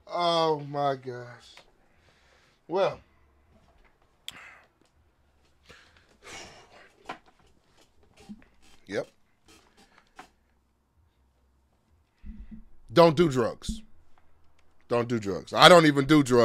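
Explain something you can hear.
A young man speaks animatedly and close by, in short bursts with pauses.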